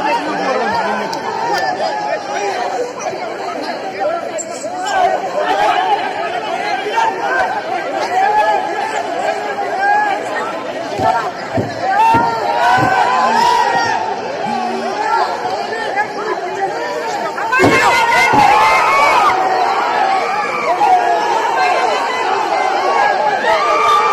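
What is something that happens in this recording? A large crowd of men shouts and clamours close by.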